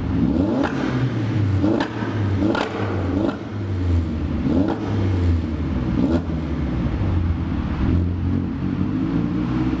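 A car engine idles with a deep, loping rumble that echoes in an underpass.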